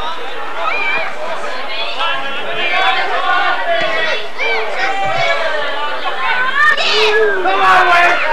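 A crowd of spectators shouts and calls outdoors.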